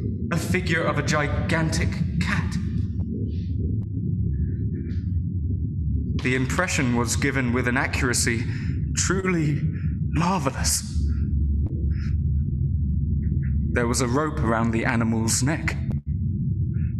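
A young man speaks close by in an intense, hushed voice.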